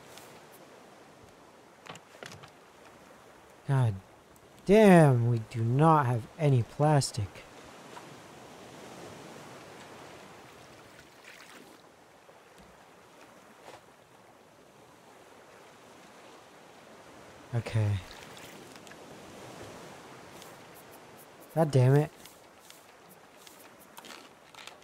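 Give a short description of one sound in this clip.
Ocean waves wash and lap softly all around.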